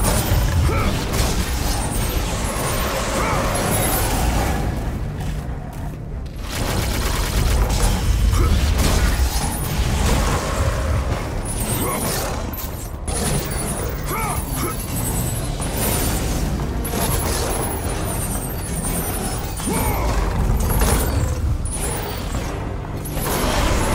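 Blades slash and strike a creature again and again.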